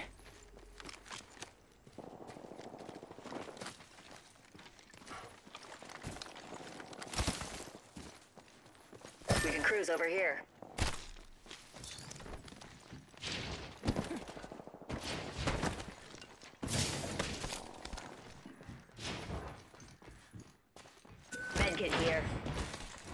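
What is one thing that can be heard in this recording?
Quick footsteps run over grass and then over hard, clanking floors.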